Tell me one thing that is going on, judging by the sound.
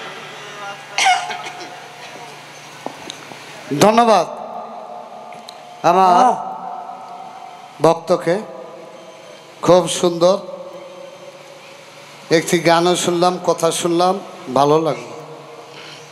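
A man sings with feeling into a microphone in short bursts.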